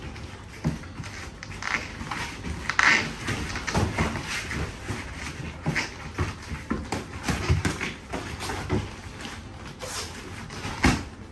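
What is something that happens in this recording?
Bare feet shuffle and step on a padded floor.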